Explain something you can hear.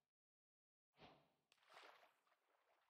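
Water splashes as a swimmer moves.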